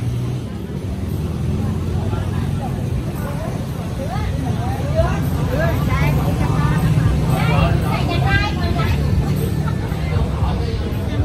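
A crowd of men and women chatter in overlapping voices.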